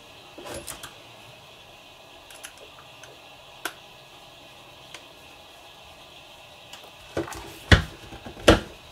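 Plastic parts click and knock as hands handle a model car chassis.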